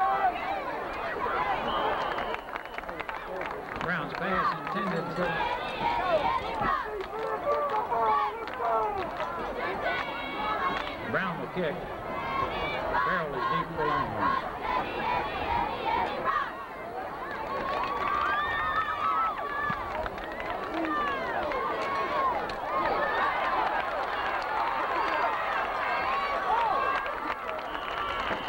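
A large crowd chatters and cheers loudly outdoors.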